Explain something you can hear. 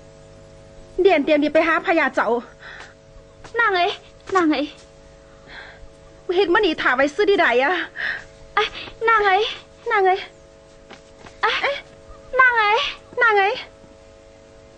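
A young woman speaks with agitation.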